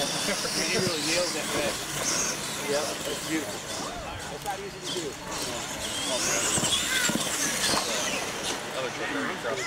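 Toy truck tyres crunch over loose dirt.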